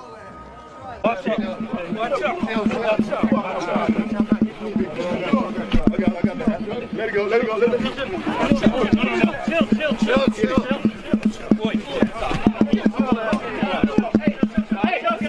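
A crowd of men shouts and yells over one another in a scuffle.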